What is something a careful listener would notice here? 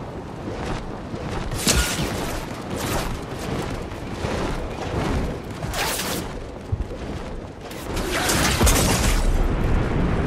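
Large wings flap and whoosh through the air.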